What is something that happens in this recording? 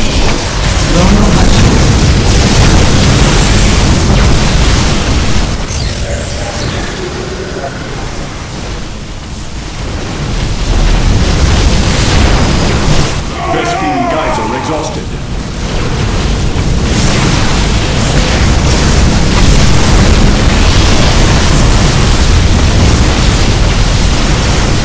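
Laser blasts and explosions crackle and boom loudly.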